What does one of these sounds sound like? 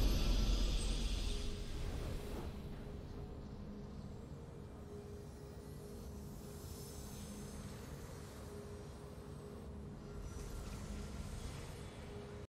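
A triumphant game fanfare fades into soft, sustained music.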